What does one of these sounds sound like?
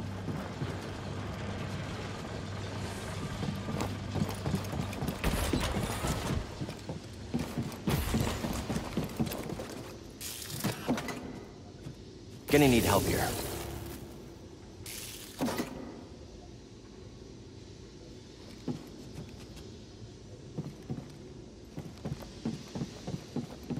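Footsteps run across a metal floor.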